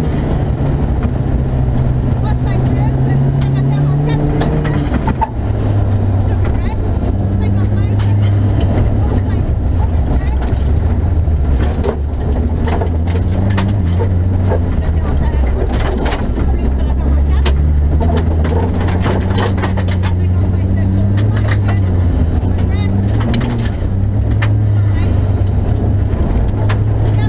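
A rally car engine roars loudly, revving up and down through gear changes.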